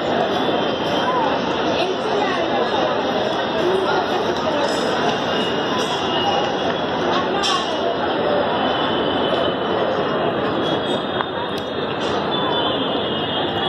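A crowd of many people chatter outdoors.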